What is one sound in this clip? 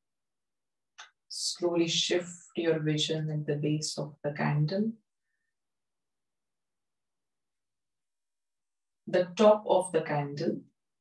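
A woman speaks calmly and softly through a microphone, close by.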